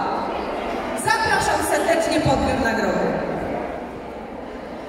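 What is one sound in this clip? A woman sings into a microphone over loudspeakers in a large echoing hall.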